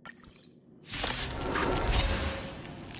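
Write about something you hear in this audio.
A loud magical blast crackles and shatters.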